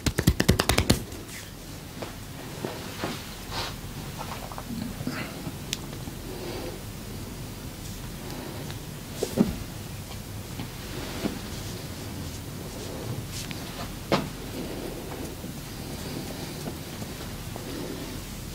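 Hands softly rub and knead skin.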